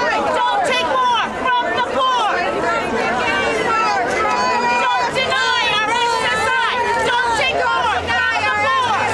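A crowd of men and women chants loudly outdoors close by.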